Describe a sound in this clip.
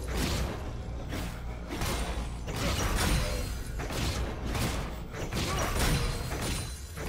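Magic spells whoosh and crackle in a game battle.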